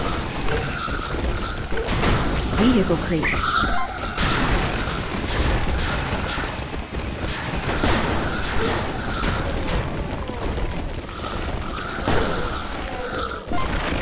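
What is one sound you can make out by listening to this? Many small creatures clatter and clash in a busy battle.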